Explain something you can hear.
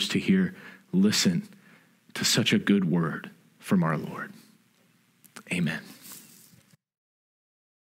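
A young man speaks calmly and warmly, close by.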